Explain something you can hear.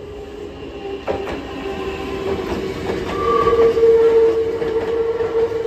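A train approaches and passes with a rising electric motor whine.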